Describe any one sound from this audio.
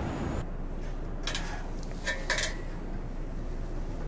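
Dough is squeezed and slapped in a metal bowl.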